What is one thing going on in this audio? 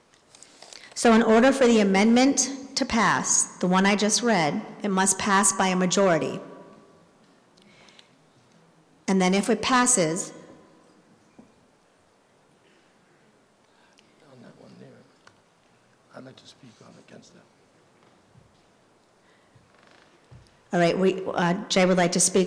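A woman speaks into a microphone through a loudspeaker in an echoing hall, pausing between phrases.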